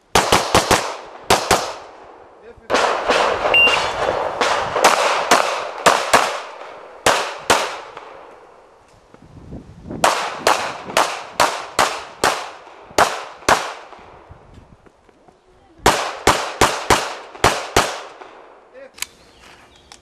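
A pistol fires rapid bursts of loud shots outdoors, each crack echoing briefly.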